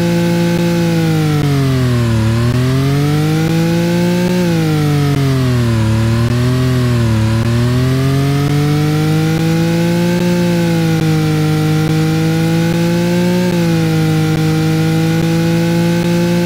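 A sports car engine roars, its pitch rising and falling again and again.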